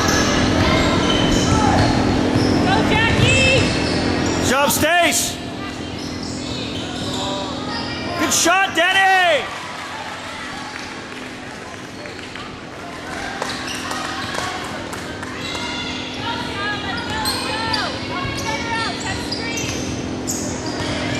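Players and spectators call out, echoing in a large hall.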